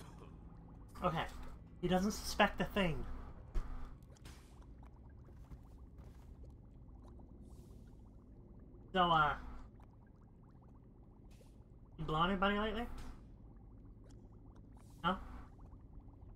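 A woman talks close to a microphone, in short bursts.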